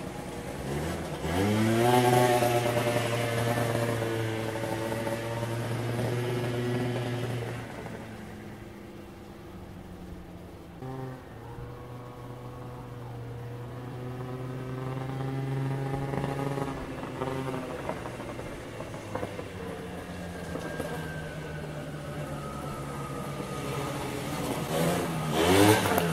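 A car engine revs up.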